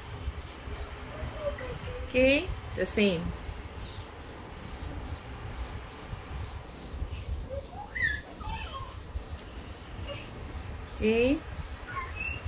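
Hands rub and knead bare skin softly.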